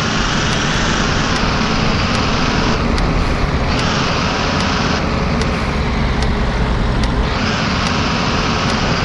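A bus engine hums steadily as the bus drives slowly along.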